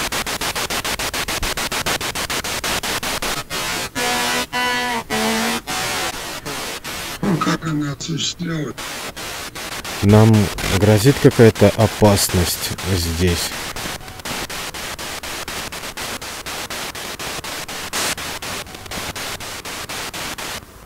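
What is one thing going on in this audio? A radio scanner crackles with rapid, steady clicking static.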